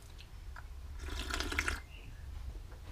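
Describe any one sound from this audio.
A man slurps a hot drink.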